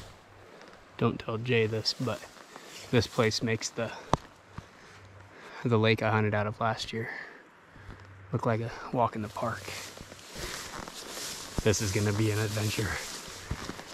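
A young man talks calmly and close by, outdoors.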